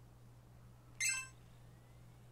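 A handheld game console gives a short chime.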